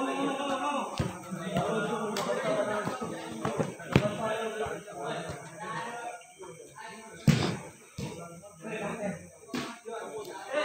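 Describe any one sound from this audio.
A futsal ball is kicked.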